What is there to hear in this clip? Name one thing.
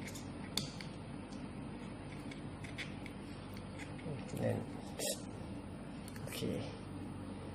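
Metal battery terminals click as they are fitted.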